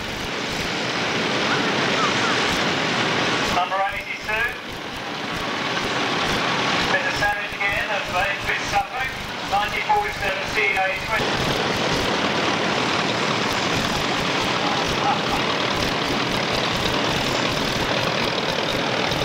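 A small tractor engine chugs as it drives slowly past.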